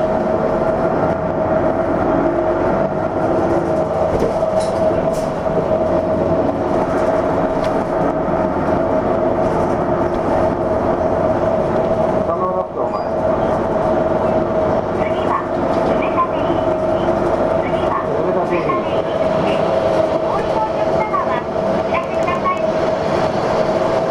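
A vehicle engine hums steadily from inside a moving car.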